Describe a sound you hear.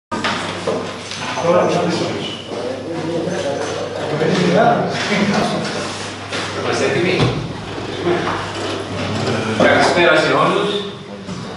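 A middle-aged man speaks calmly at a nearby table, in a room with a slight echo.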